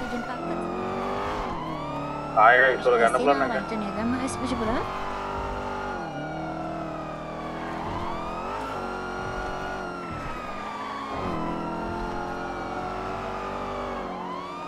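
A car engine revs up and down as a car speeds along.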